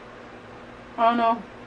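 A young woman speaks a short word close by.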